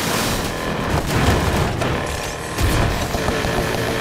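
A car crashes through a fence with loud crunching impacts.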